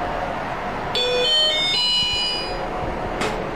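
An elevator chime rings out in a short run of bright tones.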